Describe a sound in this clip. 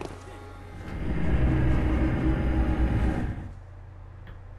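A deep shimmering whoosh swells and then fades away.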